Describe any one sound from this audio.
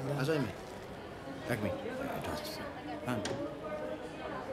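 A man talks on a phone nearby.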